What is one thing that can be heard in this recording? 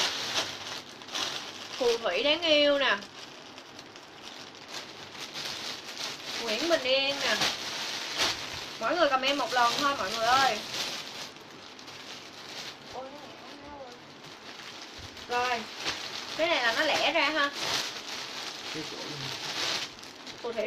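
Plastic wrapping rustles and crinkles in hands.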